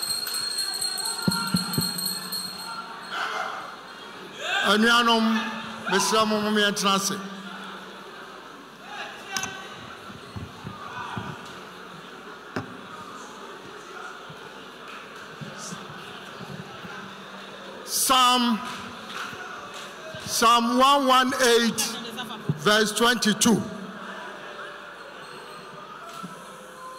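A man speaks over loudspeakers in a large echoing hall.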